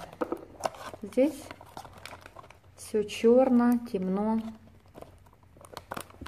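A cardboard box flap is opened.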